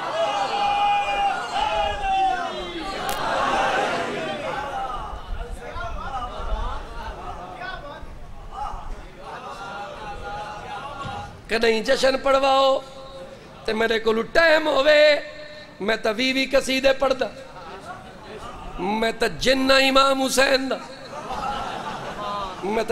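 A man chants loudly into a microphone in a melodic, mournful recitation.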